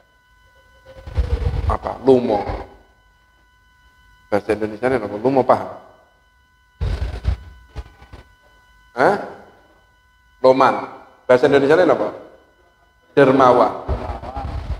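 A man speaks in bursts through a microphone, echoing in a large room.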